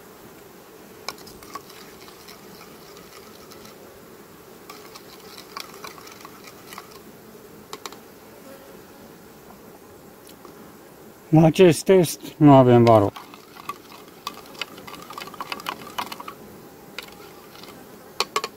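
A spoon scrapes and clinks inside a plastic cup.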